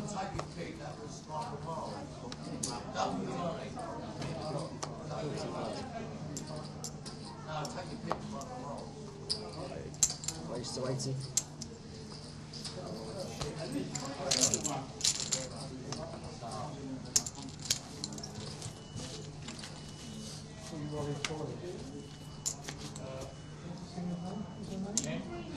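Poker chips click and clatter as they are stacked and tossed on a felt table.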